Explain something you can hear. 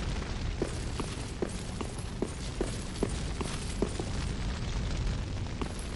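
Footsteps run quickly over a stone floor.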